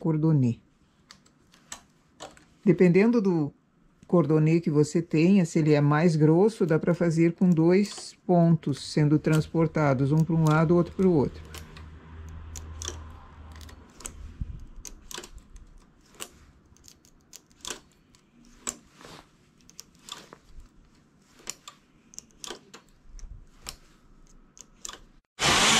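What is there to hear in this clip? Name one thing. A small metal tool clicks against the needles of a knitting machine.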